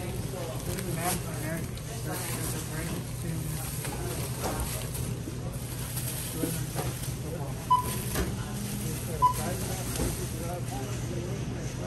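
Plastic grocery bags rustle as they are lifted into a shopping cart.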